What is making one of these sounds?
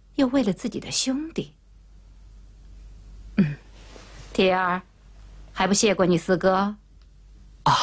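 A middle-aged woman speaks firmly and close by.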